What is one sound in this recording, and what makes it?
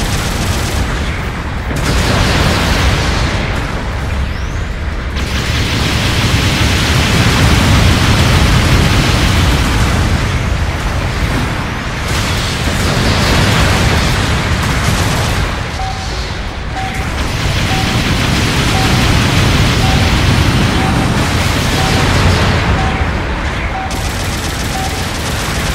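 Explosions boom and rumble throughout.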